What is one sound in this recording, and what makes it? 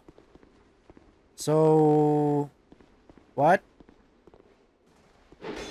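Footsteps patter on stone.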